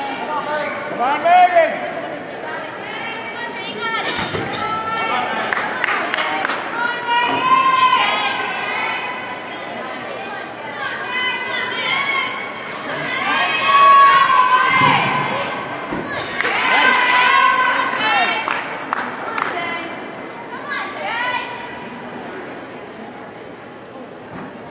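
Many people chatter and cheer in a large echoing hall.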